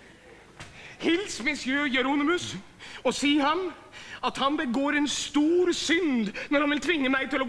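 An older man sings loudly back.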